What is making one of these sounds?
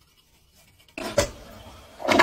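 A toilet flushes with rushing water.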